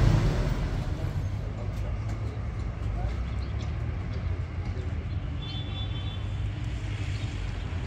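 Men talk quietly outdoors.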